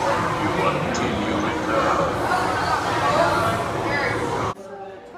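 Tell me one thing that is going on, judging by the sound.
A crowd of people chatter loudly nearby and then suddenly fall quiet.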